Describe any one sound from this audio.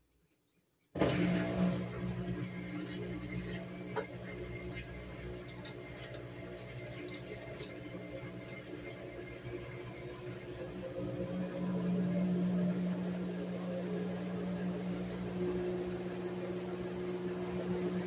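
A top-load washing machine hums as it runs its rinse.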